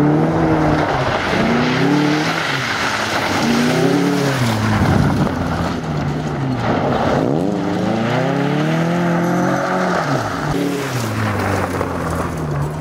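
A car engine revs hard, rising and falling as the driver shifts.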